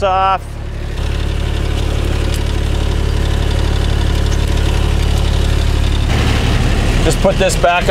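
A utility vehicle's engine idles with a steady low hum.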